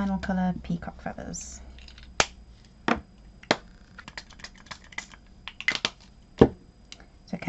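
Small objects are set down on a table with light knocks.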